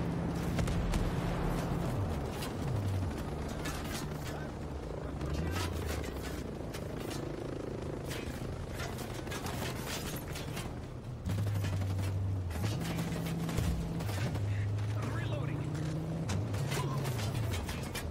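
A vehicle-mounted gun fires in rapid bursts.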